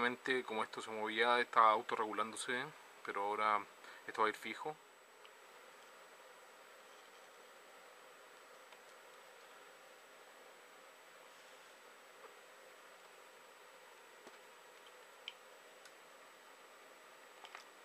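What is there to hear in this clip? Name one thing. Fingers handle a small plastic connector with faint clicks.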